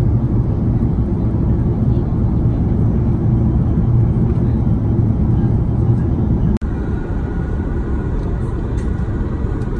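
A jet engine drones steadily as heard from inside an aircraft cabin.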